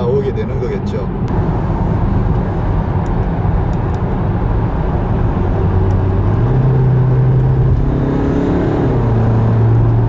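A car engine hums steadily and rises in pitch as it revs.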